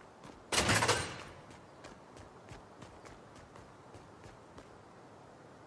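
Footsteps patter on a hard floor.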